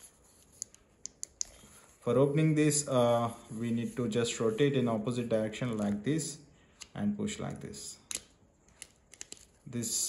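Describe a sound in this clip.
Plastic parts click as they are twisted apart and snapped together.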